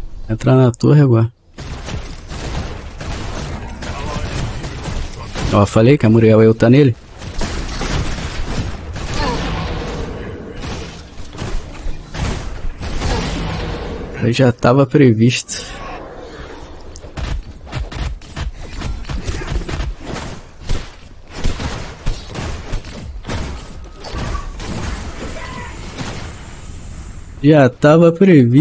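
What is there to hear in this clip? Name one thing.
Video game combat effects clash and burst.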